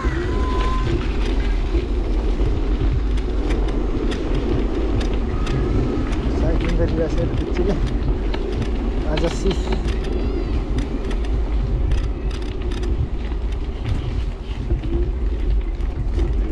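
Small tyres roll and hum on a paved path.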